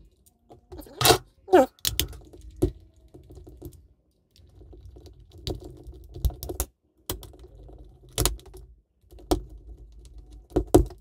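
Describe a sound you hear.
Plastic parts click and snap as a small plastic case is pried open.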